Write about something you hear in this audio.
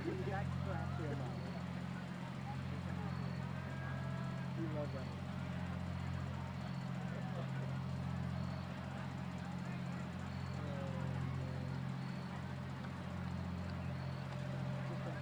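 Young women talk among themselves in a huddle, heard from a distance outdoors.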